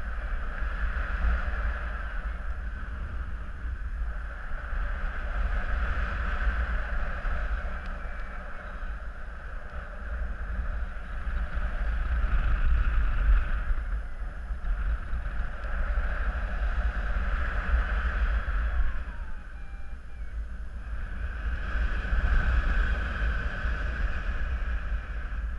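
Wind rushes and buffets loudly against the microphone in flight.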